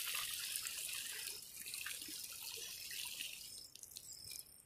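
Water splashes and trickles as a bottle is filled in a lake.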